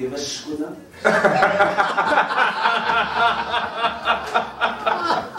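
Several men and a woman laugh loudly together.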